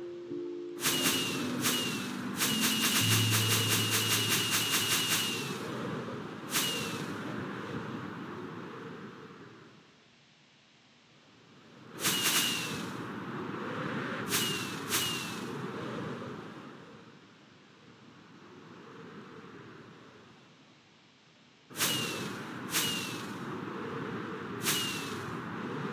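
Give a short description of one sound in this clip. Firework rockets launch one after another with sharp whooshes.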